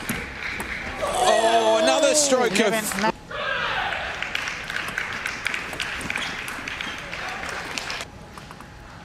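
A crowd cheers and applauds in a large hall.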